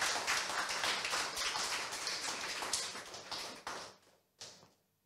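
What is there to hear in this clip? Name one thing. An audience applauds in a room, then falls quiet.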